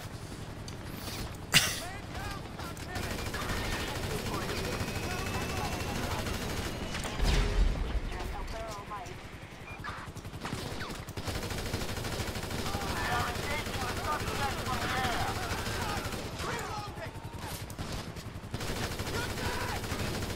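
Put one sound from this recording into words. A helicopter's rotor whirs overhead.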